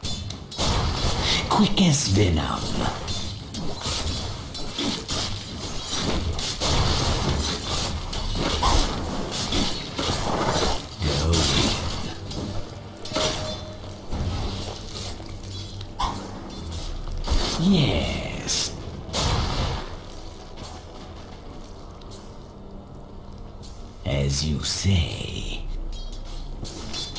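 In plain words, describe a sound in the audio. Game sound effects of spells and attacks crackle and whoosh.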